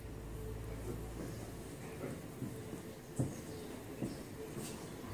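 Small objects knock faintly nearby as a man handles them.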